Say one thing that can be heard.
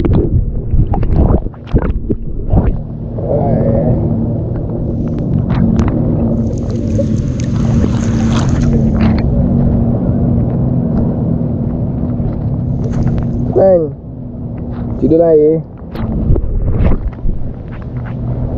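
Water splashes and laps close by, heard at the water's surface.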